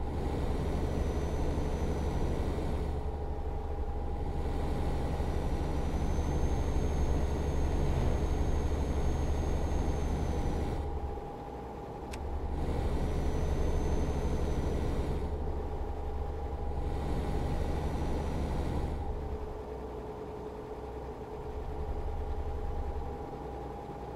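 A truck engine hums steadily while driving, with a low rumble that swells and eases.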